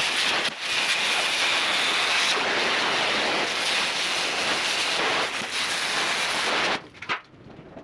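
A welding torch hisses and crackles steadily.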